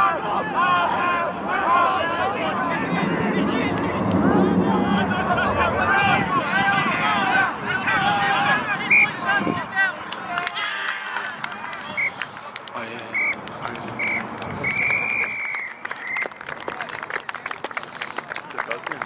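Men and young players shout and call out loudly outdoors.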